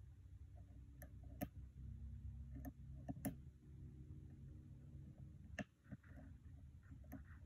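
Metal picks click and tick inside a lock.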